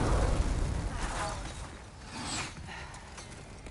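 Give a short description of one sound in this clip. A young man talks into a microphone.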